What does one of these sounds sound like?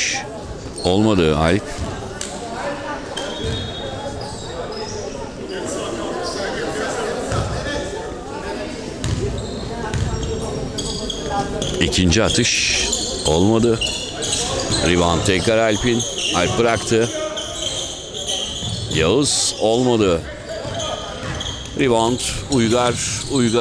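Sneakers squeak sharply on a hardwood court in an echoing hall.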